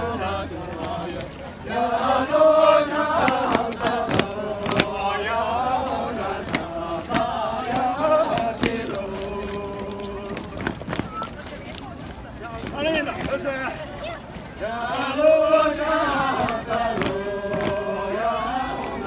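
A group of men and women sing together outdoors.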